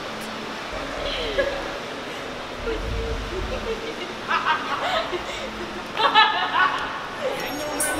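A man shouts and exclaims with excitement nearby.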